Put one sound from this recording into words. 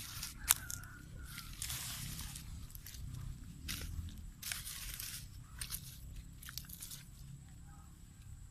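Hands scrape and pat loose sandy soil.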